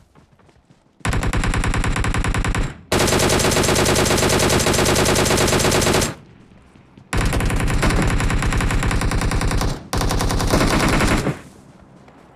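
Automatic gunfire rattles rapidly in long bursts.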